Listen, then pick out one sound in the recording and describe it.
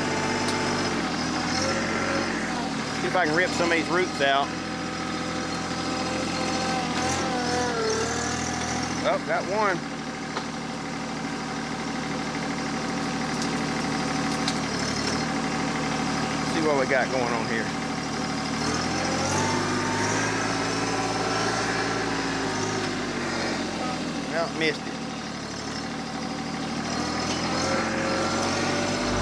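A tractor engine rumbles steadily close by, rising and falling in pitch.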